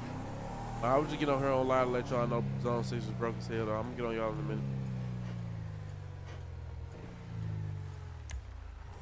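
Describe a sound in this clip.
A car engine hums and revs while driving.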